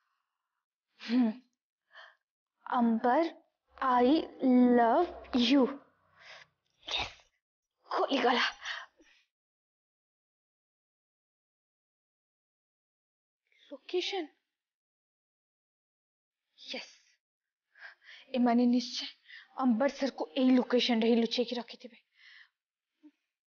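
A young woman speaks with feeling, close by, in bursts with pauses.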